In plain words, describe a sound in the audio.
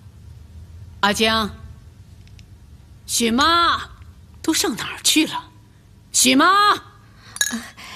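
A young woman calls out loudly.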